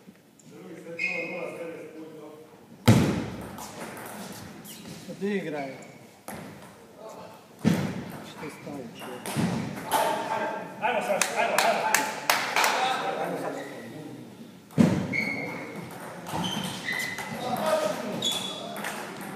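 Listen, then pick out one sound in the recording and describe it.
A table tennis ball clicks quickly back and forth between paddles and the table, echoing in a large hall.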